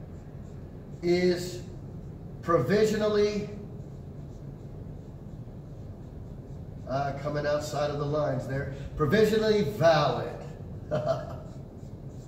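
An older man speaks calmly, as if lecturing, in short bursts.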